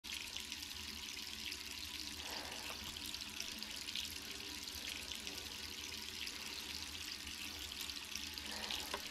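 Water runs steadily from a tap into a sink.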